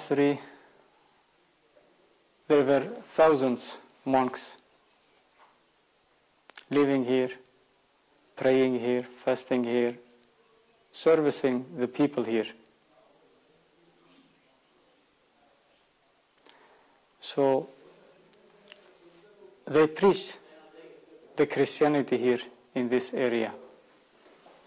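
A man speaks calmly into a clip-on microphone, in short phrases with pauses.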